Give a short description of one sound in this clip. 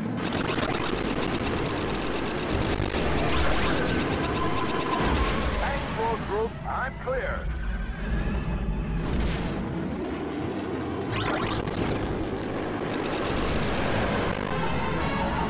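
A spaceship engine roars in flight.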